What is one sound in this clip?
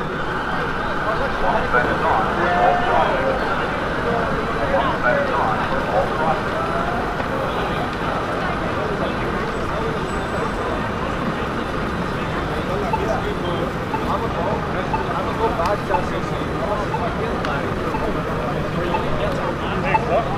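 Footsteps patter on pavement as people cross the street.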